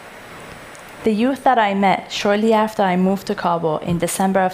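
A woman speaks calmly into a headset microphone.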